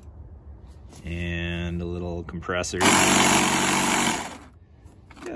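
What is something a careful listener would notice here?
A small air compressor motor runs loudly, then stops.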